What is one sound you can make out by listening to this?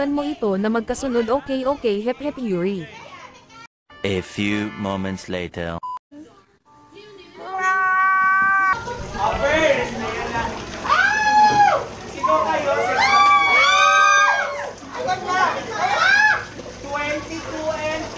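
A group of young men and women shout and laugh loudly close by.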